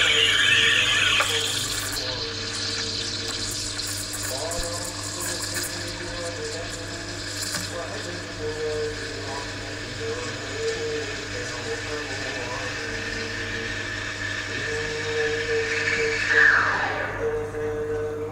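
A steam wand hisses and gurgles as it froths milk.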